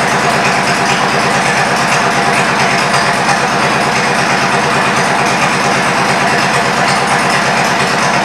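A turntable motor hums steadily as it slowly turns.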